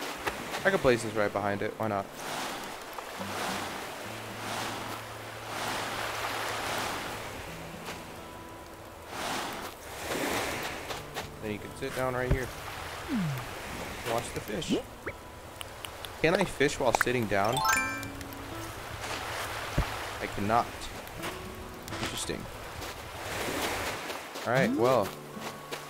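Waves wash onto a sandy shore in gentle surges.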